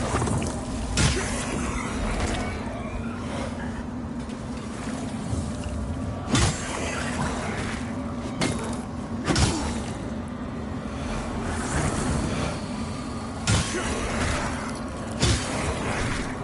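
Sword strikes clang and thud in a fight.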